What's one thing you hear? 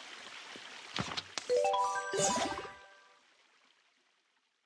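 A short, bright run of chiming notes rings out and fades.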